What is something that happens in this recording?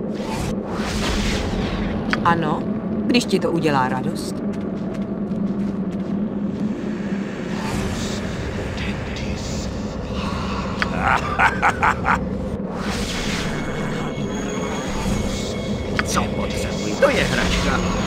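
Magical spell effects shimmer and chime.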